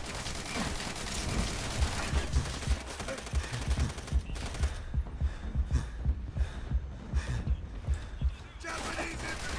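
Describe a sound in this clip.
Rapid gunshots crack from a game.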